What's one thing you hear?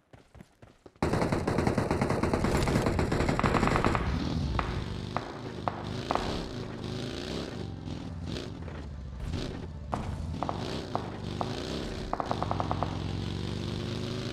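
A buggy engine roars and revs as it drives.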